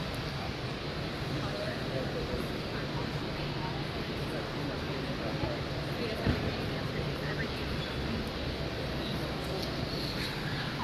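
A crowd of men and women chatters indistinctly nearby.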